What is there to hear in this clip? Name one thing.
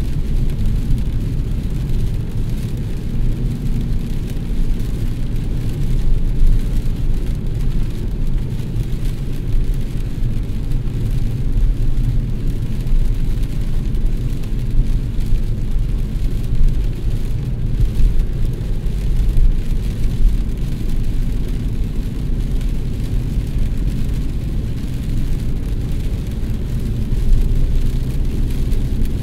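Windshield wipers thump across the glass now and then.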